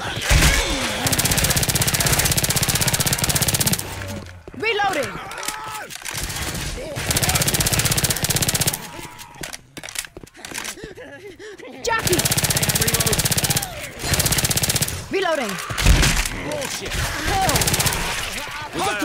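Rapid automatic gunfire rattles in long bursts.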